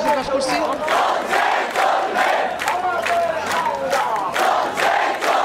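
A large crowd chants and shouts outdoors.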